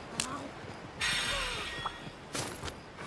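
A magical chime shimmers and sparkles.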